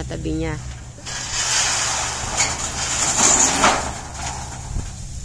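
Corrugated metal sheets rattle and scrape as they are dragged.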